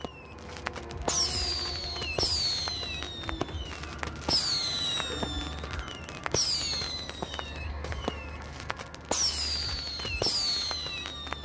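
Fireworks burst with sharp pops over and over.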